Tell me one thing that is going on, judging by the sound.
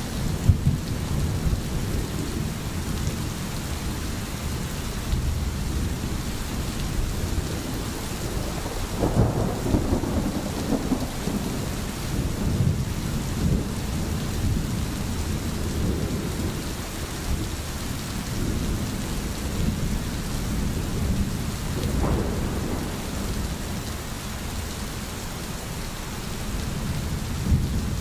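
Rain falls steadily on the forest.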